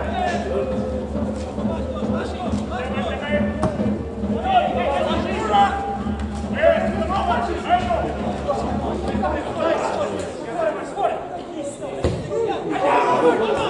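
Men shout and call out across an open football field.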